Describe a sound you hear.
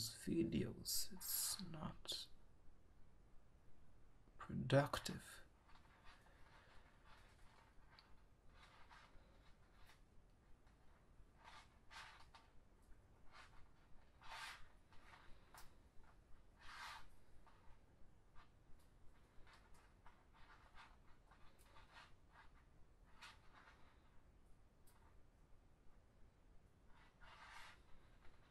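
Plastic strips rustle and crinkle as fingers weave them, close up.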